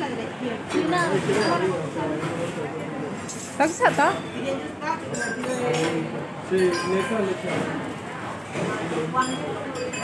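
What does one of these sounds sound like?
Men and women chatter and talk nearby in a busy room.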